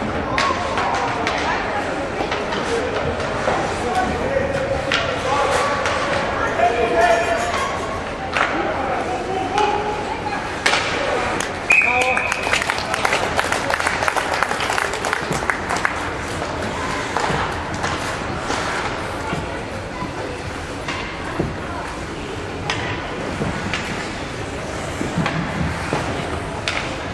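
Skates scrape and hiss on the ice.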